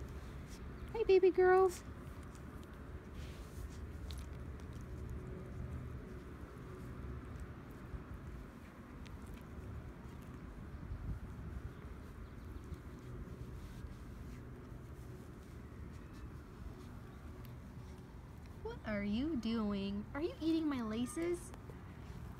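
A puppy whines in short, high yelps.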